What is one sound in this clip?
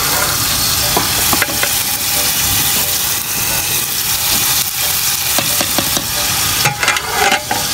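A metal lid clinks against a metal pot.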